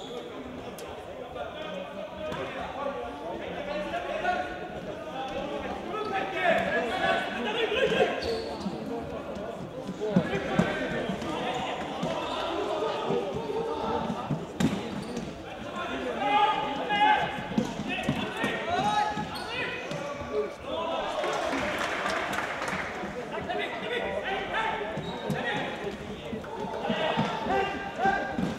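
A ball thumps as players kick it in a large echoing hall.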